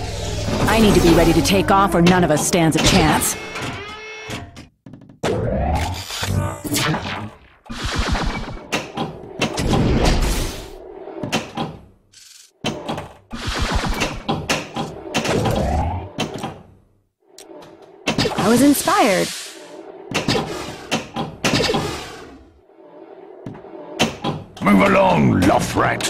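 A pinball bumps and clicks against the table.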